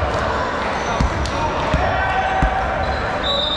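A volleyball is struck with sharp smacks.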